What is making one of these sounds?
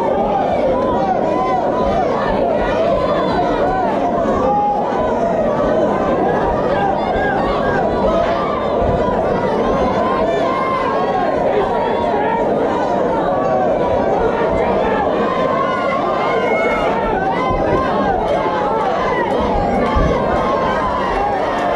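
A large crowd cheers and shouts throughout, echoing in a big hall.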